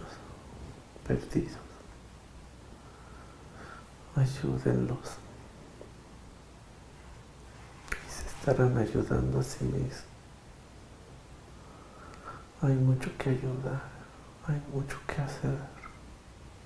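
A man speaks calmly, close by, in short bursts with pauses.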